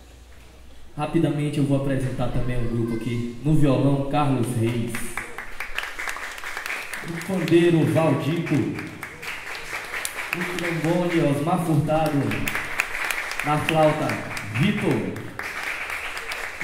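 Men sing together into microphones.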